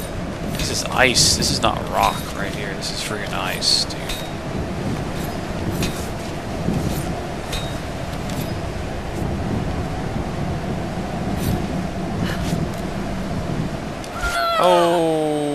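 A snowstorm wind howls and roars steadily.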